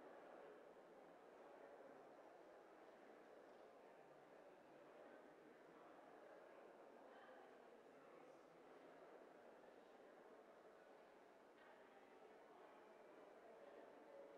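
A small string group plays slowly and softly in a large echoing hall.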